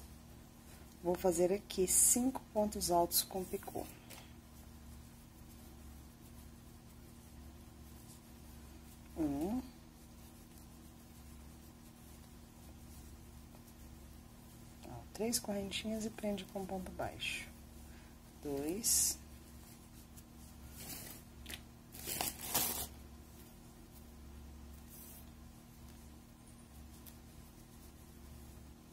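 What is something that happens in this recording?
A crochet hook softly rasps and pulls through yarn.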